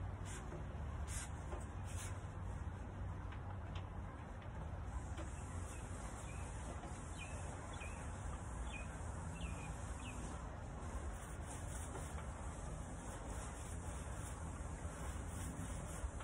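A ceiling fan whirs overhead.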